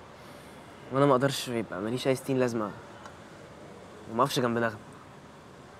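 A teenage boy speaks calmly and close by.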